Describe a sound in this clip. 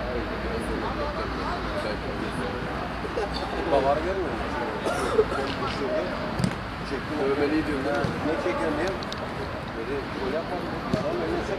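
Young men call out and shout to each other across an open field.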